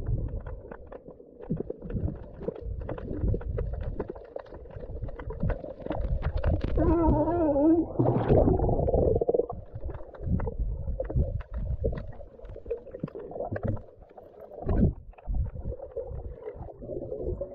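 Water swirls and bubbles underwater, with muffled knocks and pops.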